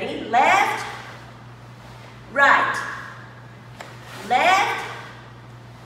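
A woman shouts short commands through a microphone in an echoing room.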